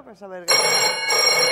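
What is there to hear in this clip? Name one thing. A middle-aged woman speaks with animation.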